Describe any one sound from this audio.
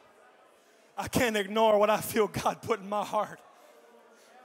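A man speaks loudly and with animation through a microphone in a large echoing hall.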